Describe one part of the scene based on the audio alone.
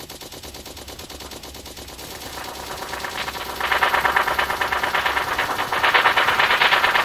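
A minigun fires rapidly and steadily, growing louder.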